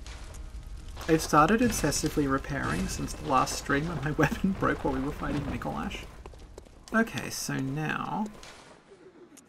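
A young woman talks calmly into a microphone.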